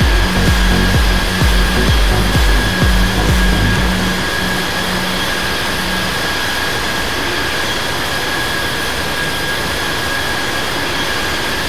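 Air rushes loudly past an aircraft in flight.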